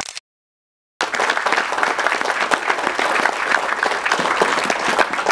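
A small crowd claps and applauds.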